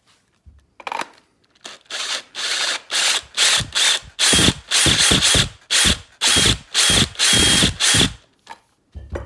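A cordless drill whirs in short bursts, driving a screw.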